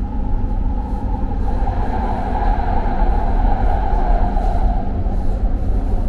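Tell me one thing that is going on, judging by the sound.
A passing train rushes by close alongside with a brief whoosh.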